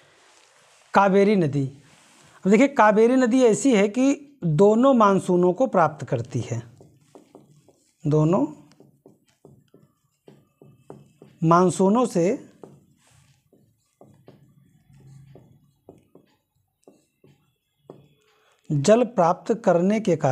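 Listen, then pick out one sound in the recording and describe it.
A man speaks calmly and clearly nearby, as if explaining.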